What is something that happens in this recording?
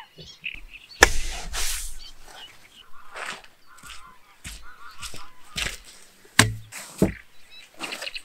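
Plastic pipes knock and clatter together.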